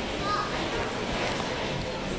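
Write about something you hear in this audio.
People talk in a busy, echoing room.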